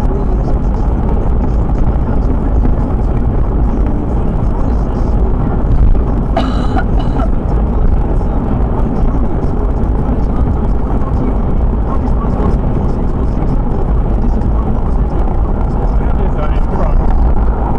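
A car drives steadily along a motorway, its engine and tyres rumbling from inside the cabin.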